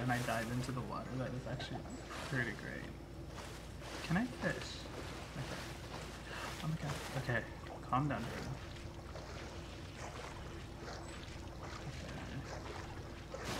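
Water splashes as a game character swims.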